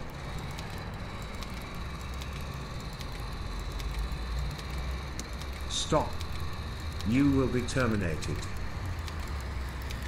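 A small robot's motor whirs softly as it rolls along.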